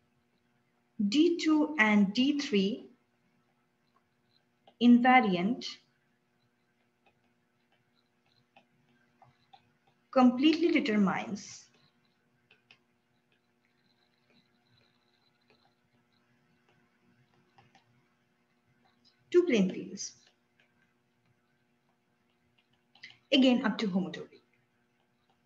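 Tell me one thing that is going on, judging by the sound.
A young woman speaks calmly in short phrases into a microphone, as if on an online call.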